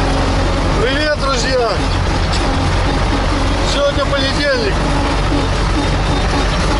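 A man talks loudly over the engine noise, close by.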